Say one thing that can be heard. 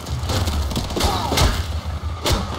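A blade slashes and strikes an enemy with an electric crackle.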